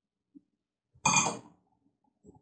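A glass clinks as it is set down.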